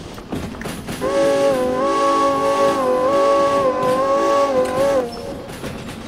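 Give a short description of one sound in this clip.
A steam locomotive whistle blows loudly and steadily.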